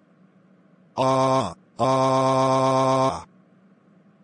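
A young man screams loudly through a synthetic voice.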